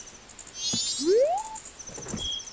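A magical whoosh rises quickly in pitch.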